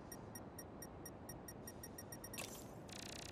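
Quick electronic beeps tick in a steady rhythm.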